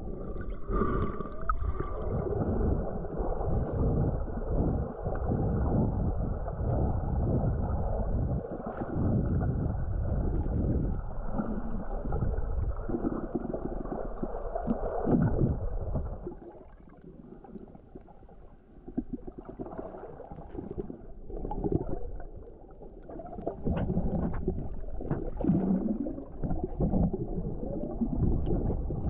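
Muffled underwater rushing and bubbling surrounds the listener.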